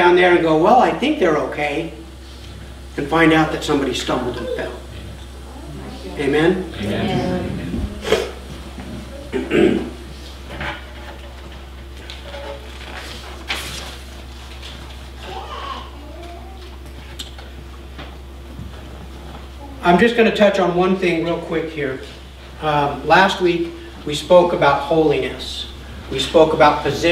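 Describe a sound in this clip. A middle-aged man speaks calmly through a microphone in a room with a slight echo, with pauses.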